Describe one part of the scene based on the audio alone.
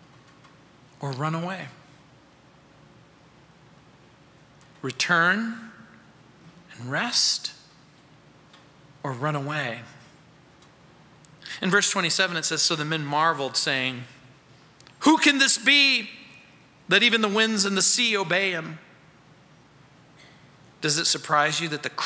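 A middle-aged man speaks slowly and calmly through a microphone, with long pauses.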